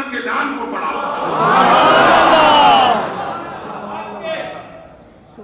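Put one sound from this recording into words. A man preaches loudly through a loudspeaker in an echoing hall.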